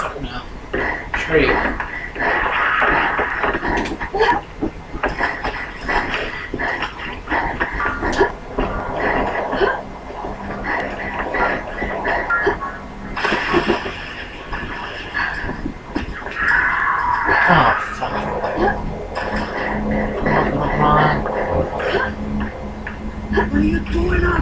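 Flames roar in bursts from a video game, heard through a television speaker.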